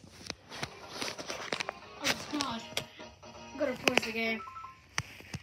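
Video game music and sound effects play from a television.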